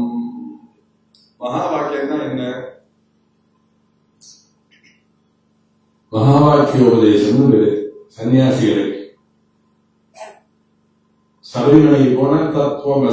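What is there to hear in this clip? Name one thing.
An elderly man speaks calmly through a microphone, in phrases with pauses between them.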